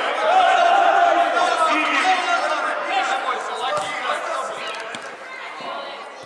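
A ball thuds when kicked.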